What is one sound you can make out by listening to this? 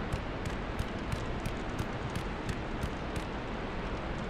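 Heavy footsteps thud on stone in a steady rhythm.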